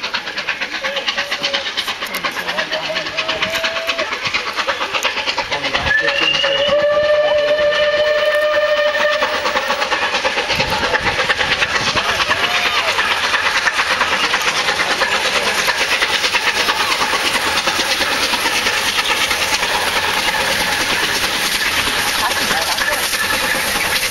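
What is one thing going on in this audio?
A steam locomotive approaches under steam, its exhaust beating fast.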